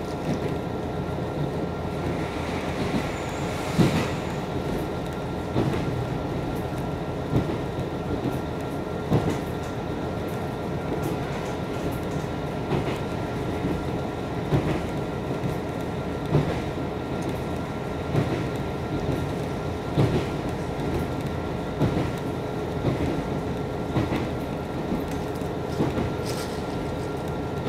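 Train wheels knock rhythmically over rail joints.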